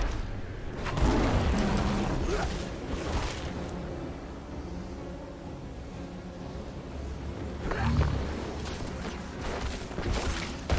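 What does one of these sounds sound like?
Spell blasts and impacts burst and crackle in combat.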